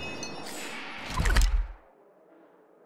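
A game menu opens with a soft whoosh.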